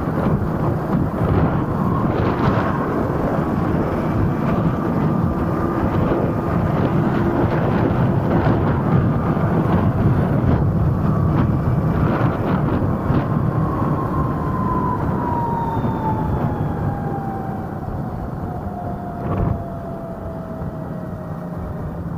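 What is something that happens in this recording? Wind rushes loudly past.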